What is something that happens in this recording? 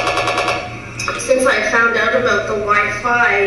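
A woman speaks calmly, heard through a loudspeaker in a large room.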